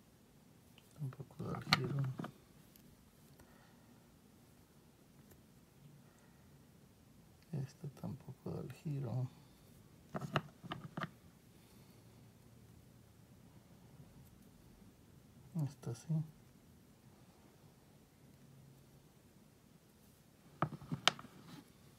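Metal coins clink and tap against each other on a hard surface.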